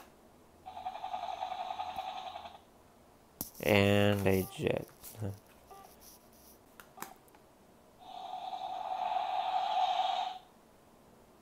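An electronic card reader buzzes as a card slides through it.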